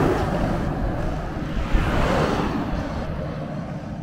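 A second truck rushes past.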